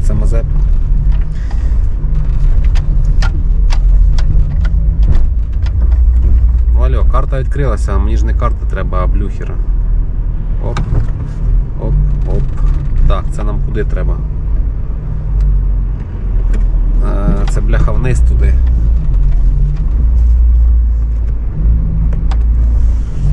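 A car engine hums low and steadily.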